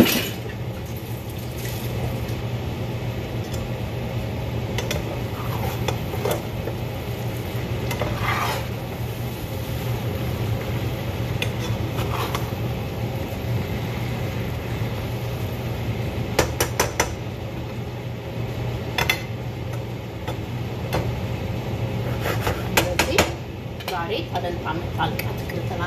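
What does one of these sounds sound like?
Food sizzles quietly in a pan.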